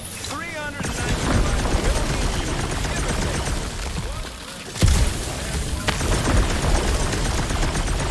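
An icy blast hisses and roars.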